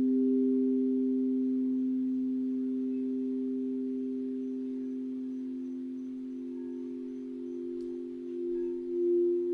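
Singing bowls ring with a steady, humming tone that swells slightly near the end.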